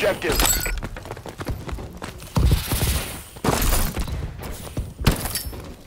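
Heavy footsteps thud across rocky ground.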